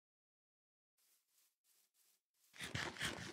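Footsteps crunch softly on sand.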